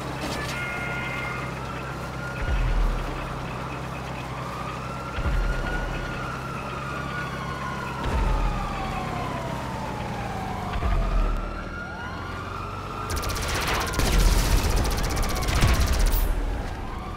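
A small kart engine hums steadily as it drives along.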